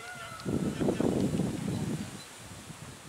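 Men shout outdoors across a field.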